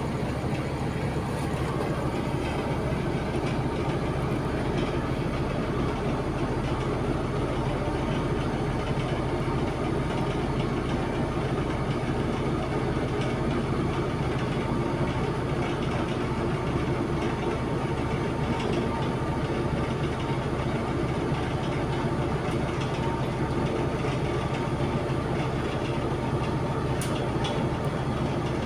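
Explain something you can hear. A large engine runs with a steady, heavy, throbbing rumble.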